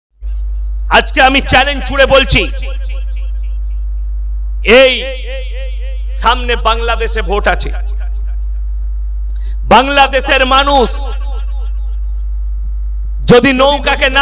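A man preaches loudly and with fervour into a microphone.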